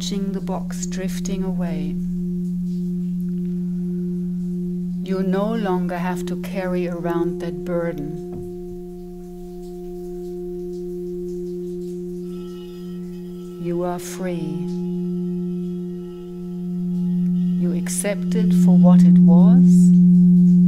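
Crystal singing bowls hum with a steady, ringing drone.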